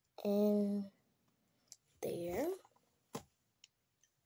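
Small plastic toy pieces click and tap together.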